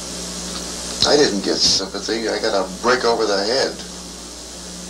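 A man speaks calmly, heard through an old, hissing recording.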